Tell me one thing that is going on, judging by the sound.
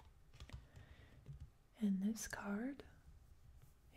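A playing card slides softly across a wooden table.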